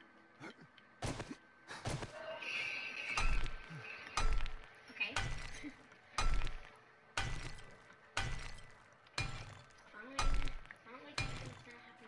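A pickaxe strikes rock with repeated heavy thuds.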